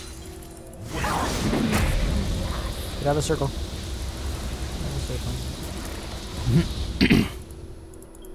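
Bursts of magic whoosh and boom.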